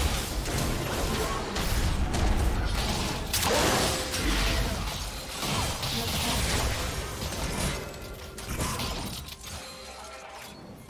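Video game spell effects whoosh and crackle in a busy battle.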